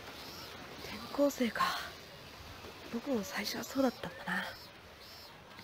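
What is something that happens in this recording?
A young woman speaks softly and dreamily.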